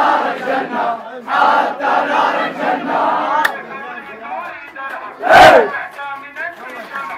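A crowd of young people shouts loudly close by.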